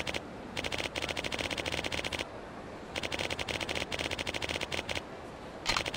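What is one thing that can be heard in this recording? Rapid electronic blips tick in quick bursts.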